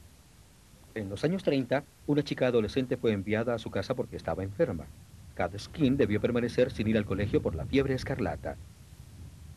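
An elderly woman speaks calmly nearby.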